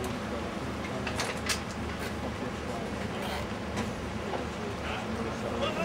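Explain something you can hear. Men talk quietly nearby.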